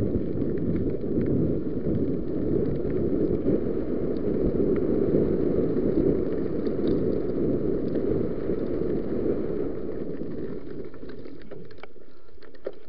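Wind buffets a microphone loudly and steadily.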